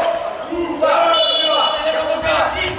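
Sneakers squeak sharply on a hard floor.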